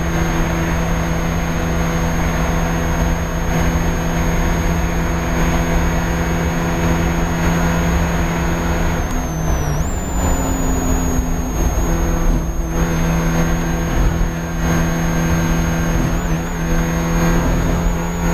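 A Spec Miata's four-cylinder engine roars at full throttle, heard from inside the cabin.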